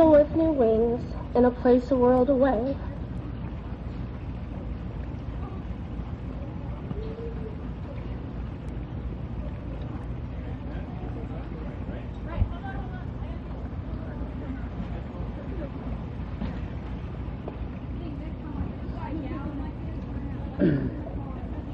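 Rain and wet snow patter steadily outdoors.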